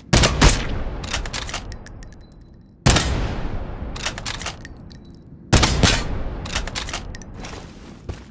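A rifle bolt clacks between shots.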